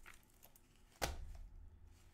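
A game case is set down on a desk with a light knock.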